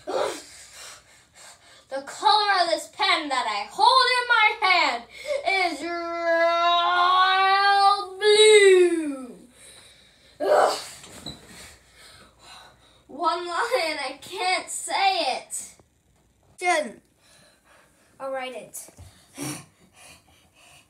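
A young boy talks with animation close by.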